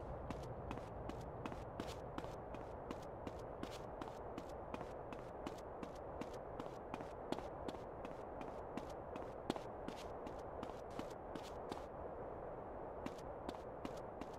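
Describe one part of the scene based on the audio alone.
Footsteps thud steadily on wooden planks.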